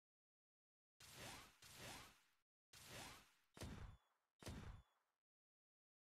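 Game blocks burst with quick popping sound effects.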